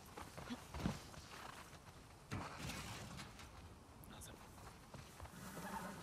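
A metal drawer slides open.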